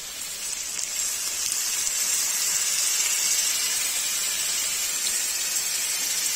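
Food sizzles and crackles loudly in a hot pan.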